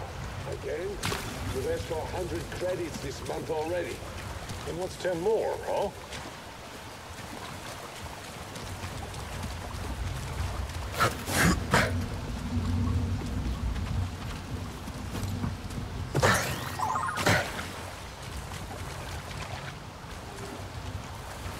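Water splashes and sloshes as someone wades through it.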